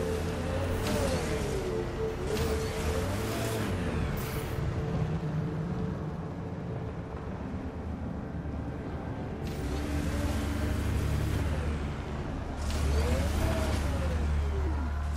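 A heavy vehicle's engine rumbles and whines as it drives over rough ground.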